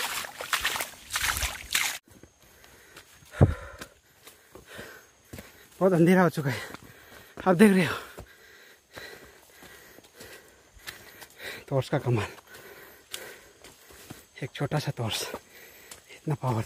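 Leaves and grass rustle as someone brushes past.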